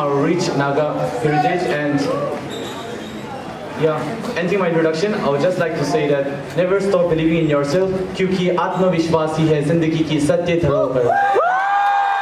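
A man speaks over a loudspeaker in a large echoing hall.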